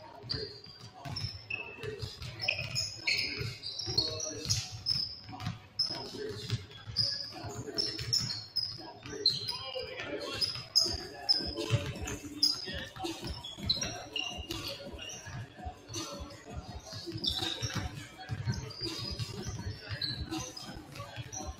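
Basketballs bounce repeatedly on a wooden court in a large echoing hall.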